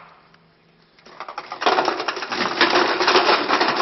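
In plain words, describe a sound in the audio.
A tall stack of paper cups topples and clatters loudly to the floor.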